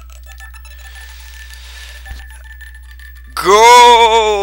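A game menu gives soft electronic chimes.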